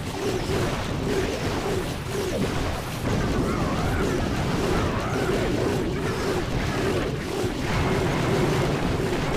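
Battle sound effects clash and thud in quick succession.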